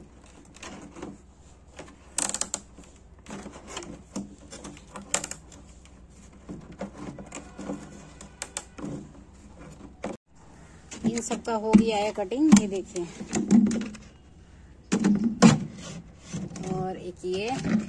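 A hard plastic bucket creaks and knocks as a hand handles it.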